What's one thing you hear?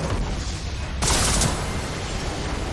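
A game tower explodes with a loud blast.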